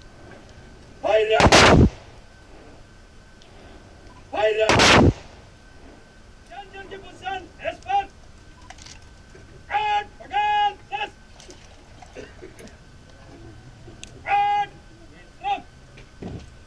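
A man shouts drill commands.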